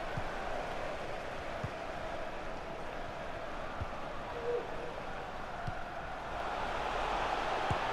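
A stadium crowd roars steadily, swelling toward the end.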